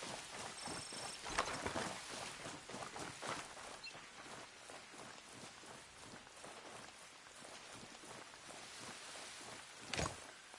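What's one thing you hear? Footsteps rustle through grass and leaves at a run.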